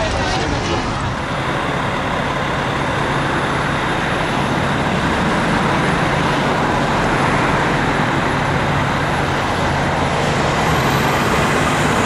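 A fire truck engine idles and rumbles.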